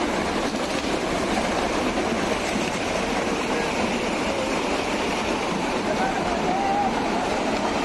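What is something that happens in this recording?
A torrent of water rushes loudly.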